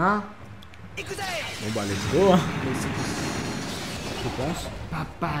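A magical energy burst whooshes and crackles.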